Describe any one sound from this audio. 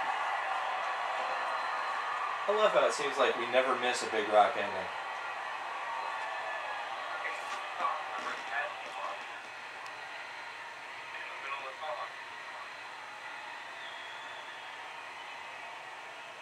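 Rock music plays through a television speaker.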